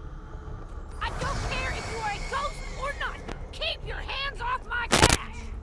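A zombie snarls and growls close by.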